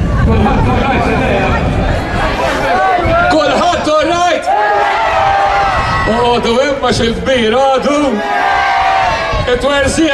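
A man talks animatedly into a microphone over loudspeakers.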